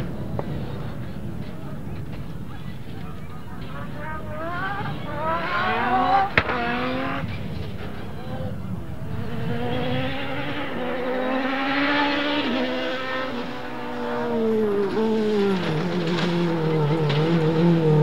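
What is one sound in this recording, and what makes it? Tyres crunch and skid on dry dirt.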